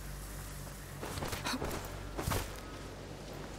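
Heavy blows land with sharp, whooshing thuds.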